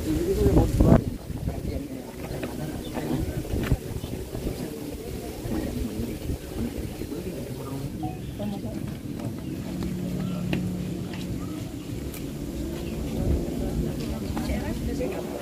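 A crowd of adults murmurs and talks quietly outdoors.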